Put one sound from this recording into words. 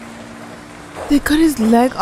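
A young woman speaks with surprise close to a microphone.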